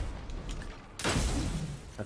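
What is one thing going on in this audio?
A loud energy blast bursts and roars.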